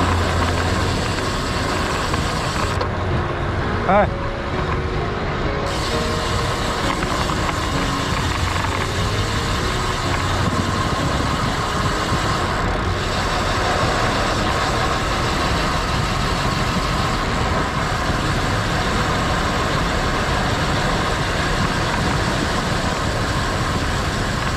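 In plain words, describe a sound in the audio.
Road bike tyres hum on asphalt.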